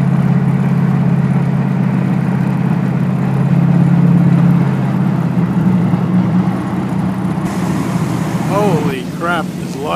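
A hot rod engine rumbles low and steady close by.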